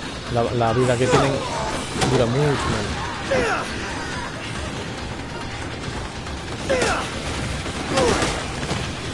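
A bat thuds against bodies in sharp hits.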